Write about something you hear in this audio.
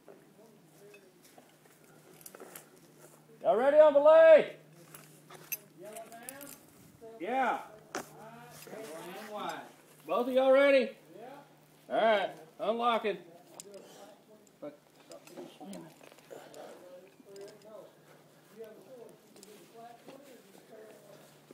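Metal climbing gear clinks and rattles.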